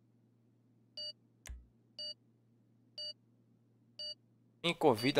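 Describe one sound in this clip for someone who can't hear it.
Short electronic menu beeps sound several times.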